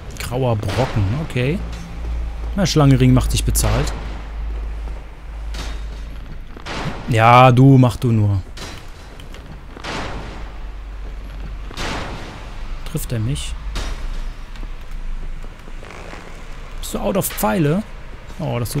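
A young man talks with animation through a microphone, close by.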